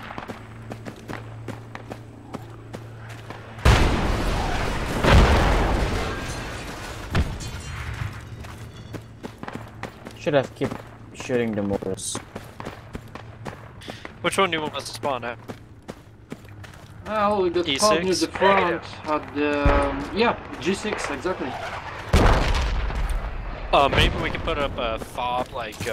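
Footsteps crunch over dry, stony ground.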